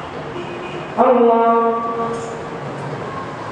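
A man chants loudly through a microphone in an echoing hall.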